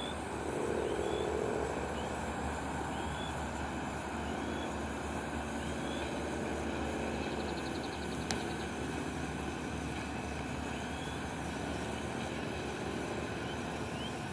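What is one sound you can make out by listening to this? A diesel locomotive rumbles steadily as it approaches in the distance.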